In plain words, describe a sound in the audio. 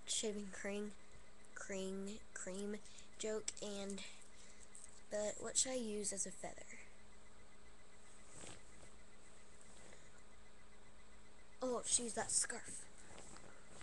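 A young girl speaks close to a microphone.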